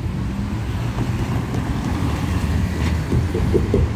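A bus engine rumbles as it pulls past up close.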